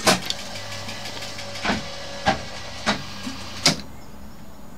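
Slot machine reels stop one after another with loud clunks.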